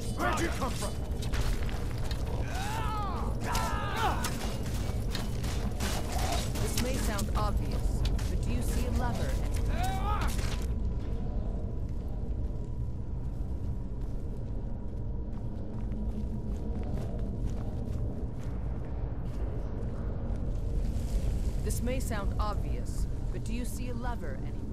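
Armoured footsteps clatter on a stone floor.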